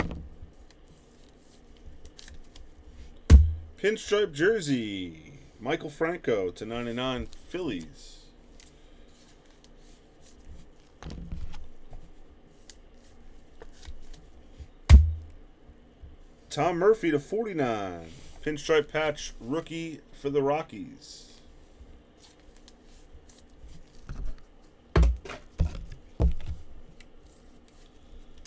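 Plastic card holders click and rustle as they are handled.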